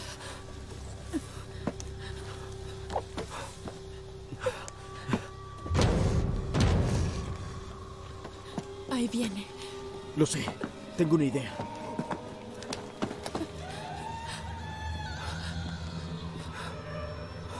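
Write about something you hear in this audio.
A young woman gasps and whimpers close by.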